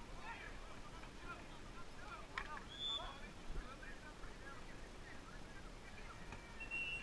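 Players shout to each other across an outdoor pitch.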